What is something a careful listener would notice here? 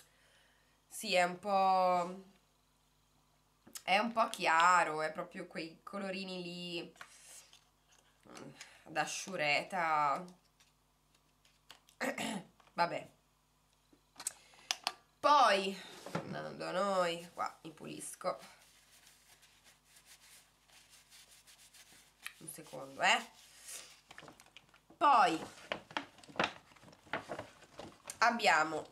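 A young woman talks calmly and close to the microphone, in short bursts with pauses.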